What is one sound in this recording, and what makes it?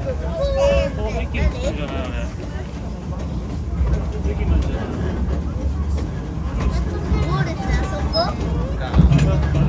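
Metal wheels squeal and clank on the rails.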